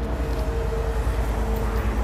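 A metal chain clinks.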